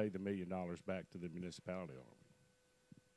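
A middle-aged man speaks calmly into a handheld microphone.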